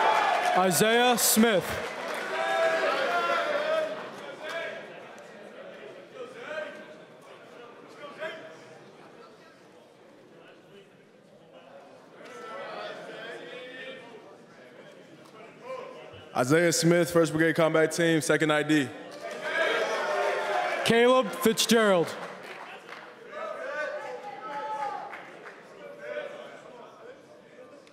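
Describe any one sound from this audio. A large crowd of young men chatters and calls out in a large hall.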